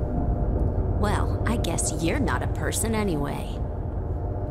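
A young woman speaks calmly and briefly.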